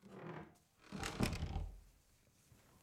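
A book scrapes on a bedside table as a hand picks it up.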